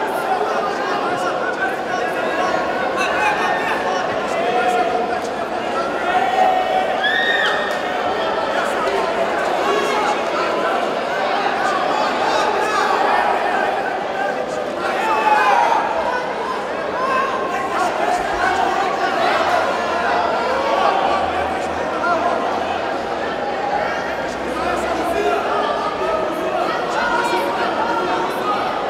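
A crowd of voices chatters and shouts in a large echoing hall.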